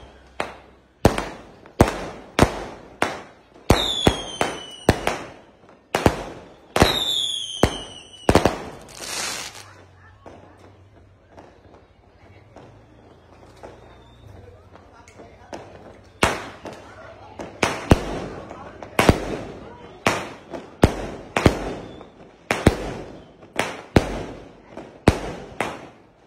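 Fireworks explode overhead in rapid loud bangs.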